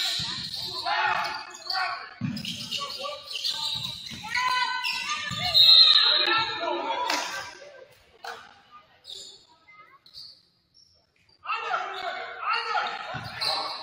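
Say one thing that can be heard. Young players shout and call to each other in a large echoing gym.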